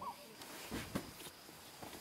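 Bedsheets rustle as a hand pulls at them.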